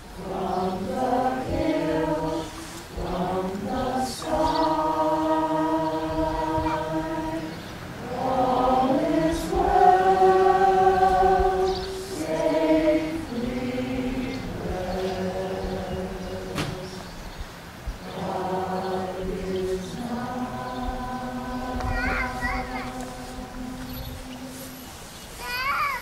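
A choir of men and women sings slowly outdoors.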